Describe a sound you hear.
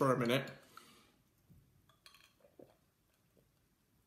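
A young man gulps down a drink.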